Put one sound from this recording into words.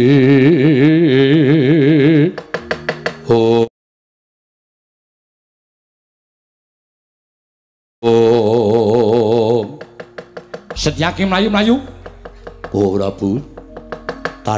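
A man sings in a wavering, drawn-out voice close by.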